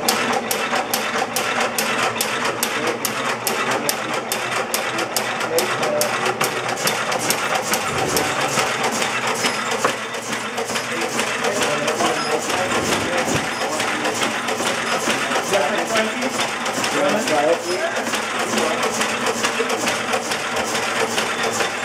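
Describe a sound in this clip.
A machine clatters with a fast, steady mechanical rhythm close by.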